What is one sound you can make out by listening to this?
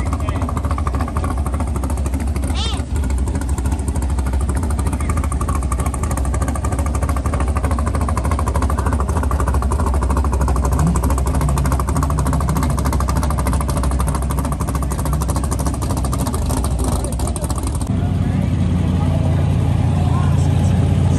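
Powerful car engines rumble loudly at idle, close by.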